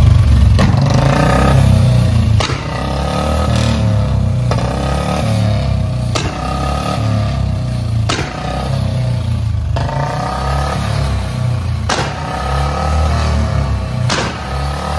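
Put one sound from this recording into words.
A motorcycle engine idles with a steady low thumping.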